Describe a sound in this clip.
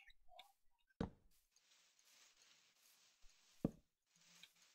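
Wooden blocks thud softly as they are set down.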